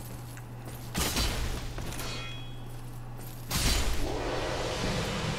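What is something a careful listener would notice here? A sword swings and strikes with a heavy impact.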